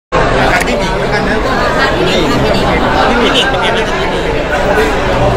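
A small crowd murmurs in the background.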